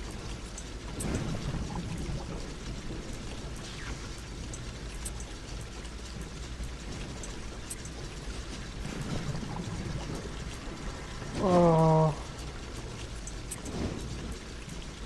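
Soft whooshing game sound effects play.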